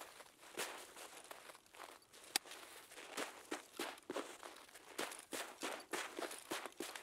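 Footsteps crunch steadily over snow and gravel.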